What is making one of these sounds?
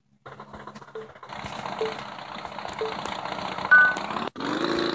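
Beeps count down before a start.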